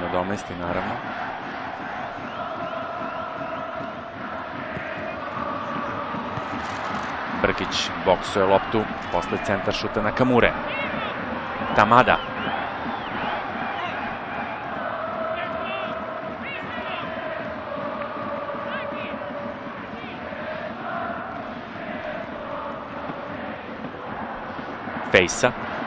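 A large stadium crowd chants and sings steadily.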